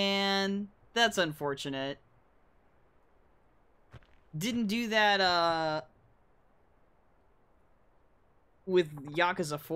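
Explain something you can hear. A young man talks into a microphone, in short bursts.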